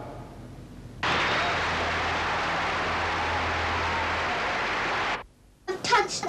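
A large crowd applauds.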